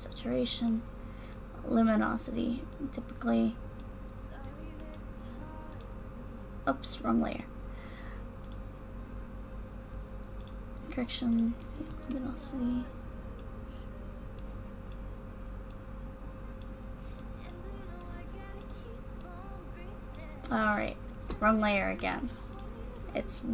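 A young woman talks with animation into a close microphone, in short bursts with pauses.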